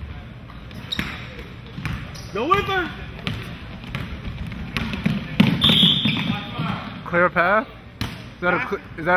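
A basketball thumps on a wooden floor.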